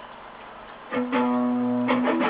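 An electric guitar plays chords close by.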